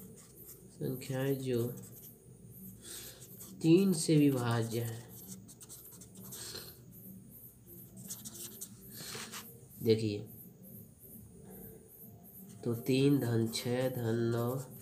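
A pen scratches across paper.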